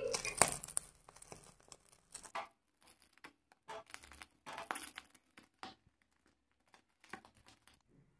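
Chicken skin crackles softly as it singes over a gas flame.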